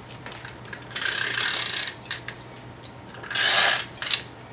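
A tape runner rolls adhesive onto a card with short scraping rasps.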